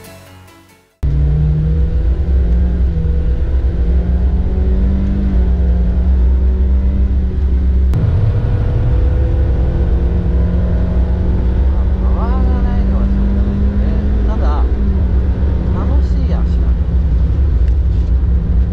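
A car engine roars loudly at high revs, heard from inside the car.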